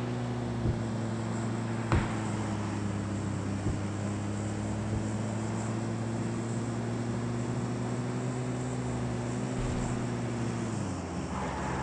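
A vehicle engine drones steadily over rough ground, then cuts out.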